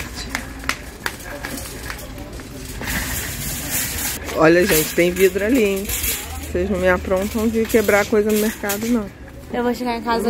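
A shopping cart rattles as it rolls.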